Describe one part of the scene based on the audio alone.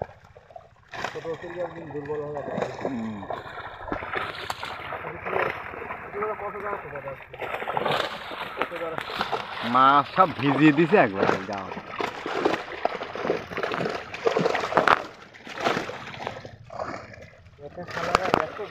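Fish splash and thrash in water.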